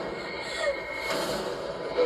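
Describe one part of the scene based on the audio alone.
A young girl cries out in distress, heard through a television loudspeaker.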